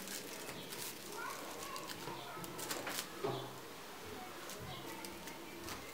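Scissors snip through thin plastic sheeting.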